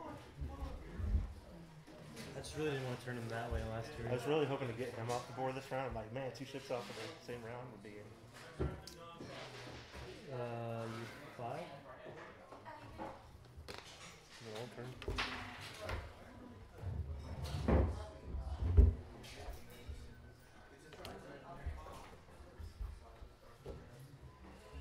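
Game pieces click and slide on a table.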